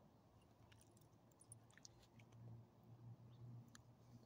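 A small dog chews a treat with soft clicking bites.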